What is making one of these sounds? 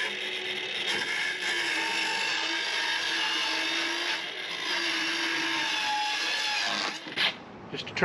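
A circular saw whines as it cuts through wood.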